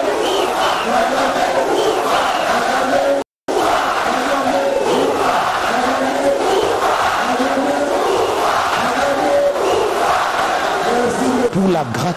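A large crowd sings together.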